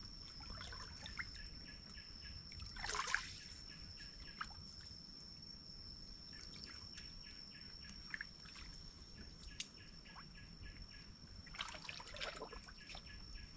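Water splashes as hands stir a shallow pool.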